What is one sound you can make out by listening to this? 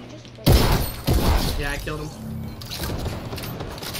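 Gunshots crack loudly a few times.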